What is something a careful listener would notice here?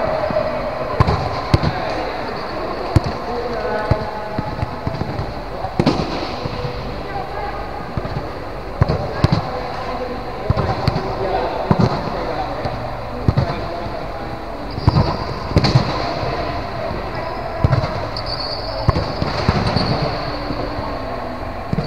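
A volleyball is struck with sharp slaps that echo through a large hall.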